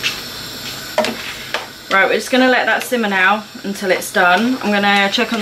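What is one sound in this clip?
A spatula scrapes and stirs food in a pan.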